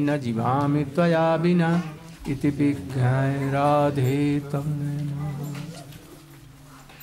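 An elderly man chants in a loud, drawn-out voice through a microphone.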